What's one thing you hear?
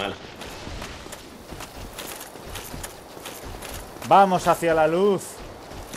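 Armoured footsteps clank on stone steps.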